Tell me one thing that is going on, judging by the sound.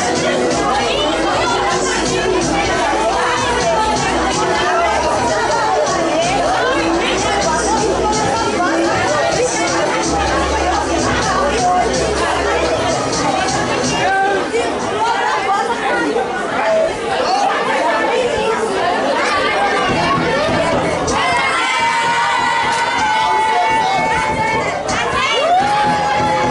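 A crowd of young people sings and cheers loudly outdoors.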